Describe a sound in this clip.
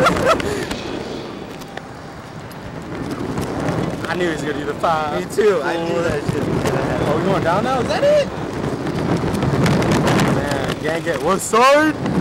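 Wind rushes loudly past on a swinging amusement ride.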